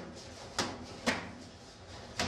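A shin kick lands with a slap.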